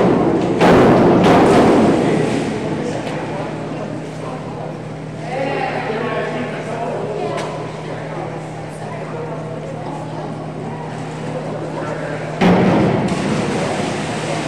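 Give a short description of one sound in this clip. A diver splashes into the water with an echo.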